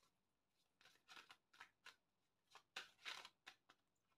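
Cards shuffle and slide against each other.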